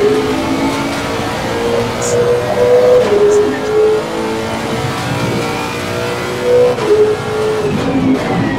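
A racing car engine roars at high revs, shifting gears as it speeds up.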